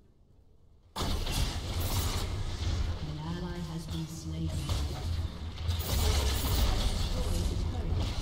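Game spell effects and explosions crash loudly during a fight.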